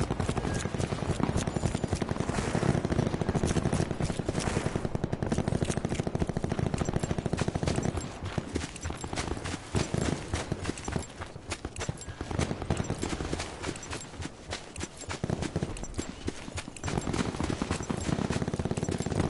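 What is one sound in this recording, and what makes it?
Footsteps run quickly over ground and through grass.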